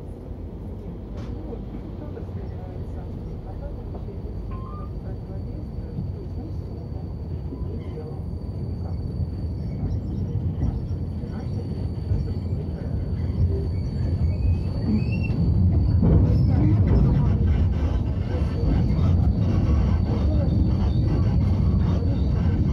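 A tram rumbles and rattles along its rails, growing louder.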